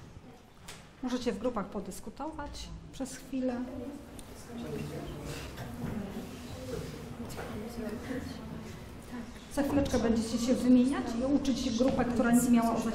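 A teenage girl talks and laughs close by.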